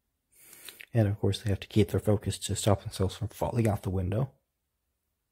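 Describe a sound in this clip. A deep-voiced man speaks firmly, close by.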